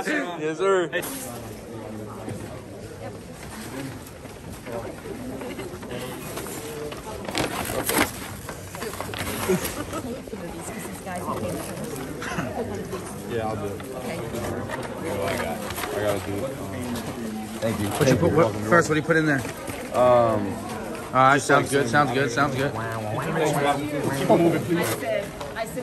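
Several people talk with one another in a room with a murmur of voices.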